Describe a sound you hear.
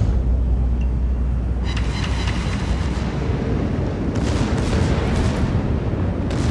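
Waves splash and rush against a ship's bow.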